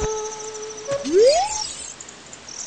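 A short electronic tone rises quickly in pitch.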